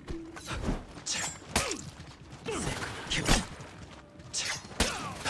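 Steel blades clash and scrape in a sword fight.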